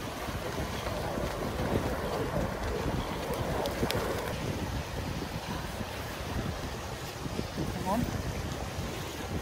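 Seals bark and bleat nearby.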